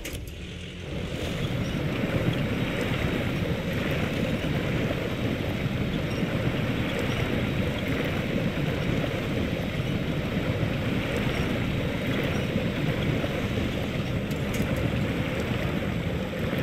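Water splashes and swirls around a truck's wheels.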